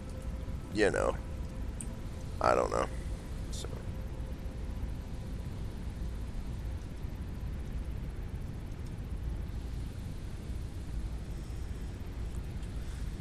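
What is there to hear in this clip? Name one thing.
Machines hum low and steadily.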